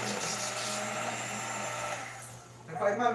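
An electric hand mixer whirs steadily, then stops.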